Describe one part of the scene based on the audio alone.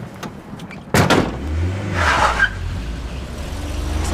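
A vehicle engine starts and rumbles as it pulls away.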